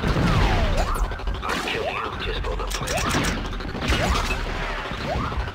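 Laser blasters fire in quick, repeated zapping shots.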